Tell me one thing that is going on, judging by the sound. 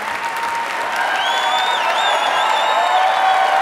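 People in a crowd cheer and whistle.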